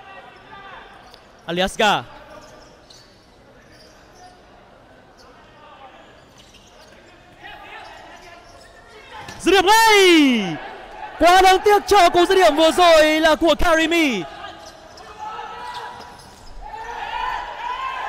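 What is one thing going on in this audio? A ball thuds as players kick it on a hard court.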